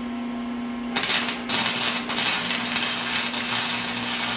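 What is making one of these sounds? An arc welder crackles and sizzles steadily.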